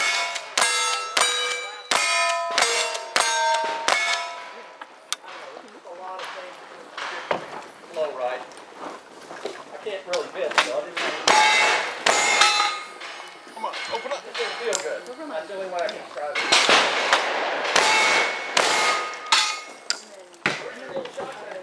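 Gunshots crack in quick succession outdoors.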